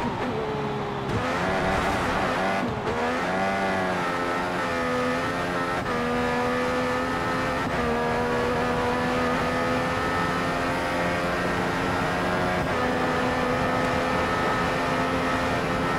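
A racing car engine screams at high revs, rising in pitch through each gear and dropping briefly at each gear change.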